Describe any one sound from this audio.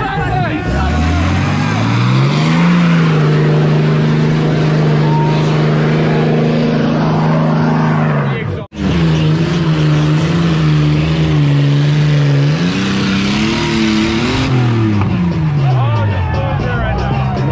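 A truck engine roars and revs loudly.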